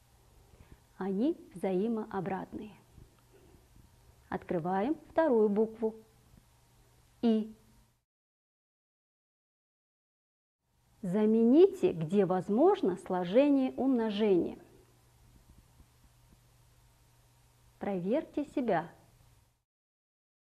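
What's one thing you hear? A woman speaks calmly and clearly, as if explaining a lesson, close to a microphone.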